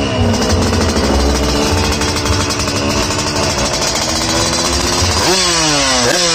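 A motorcycle engine idles unevenly close by.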